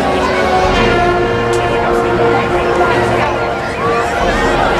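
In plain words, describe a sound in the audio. A marching band plays a loud, held chord outdoors.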